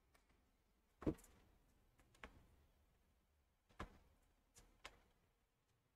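Tennis rackets hit a ball back and forth in sharp knocks.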